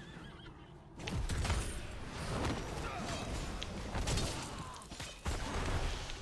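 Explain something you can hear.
Game battle effects whoosh and crackle.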